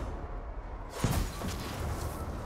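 A loud explosion bursts with a deep boom.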